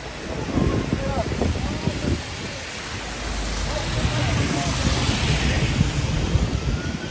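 A bus rumbles past close by.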